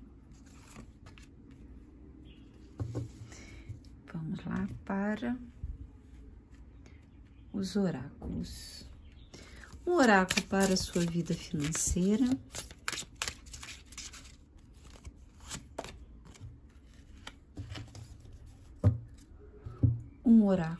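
Cards are laid softly on a cloth.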